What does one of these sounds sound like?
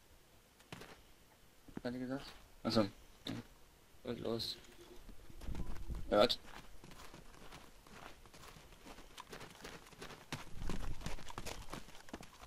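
Footsteps run along a hard road.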